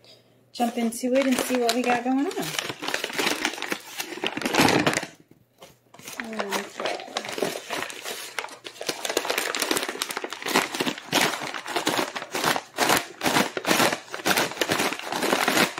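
Paper bags rustle and crinkle as they are handled.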